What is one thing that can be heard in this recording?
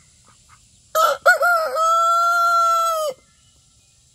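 A rooster crows loudly close by.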